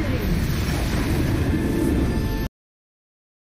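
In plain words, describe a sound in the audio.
A loud booming blast rumbles and roars, then cuts off abruptly.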